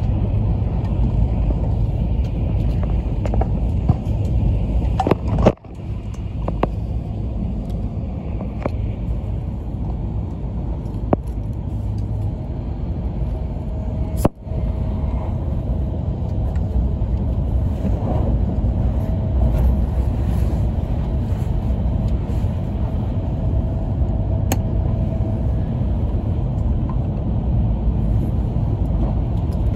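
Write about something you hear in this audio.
A train rumbles steadily as it runs.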